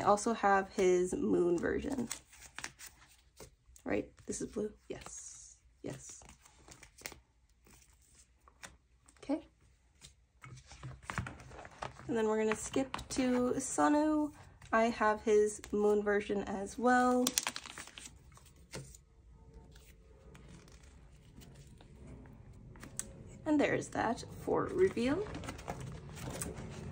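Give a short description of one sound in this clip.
Plastic sleeves rustle and crinkle close by.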